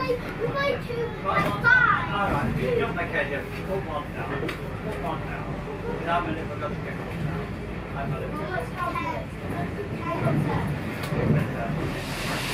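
A train rumbles and clatters along the tracks.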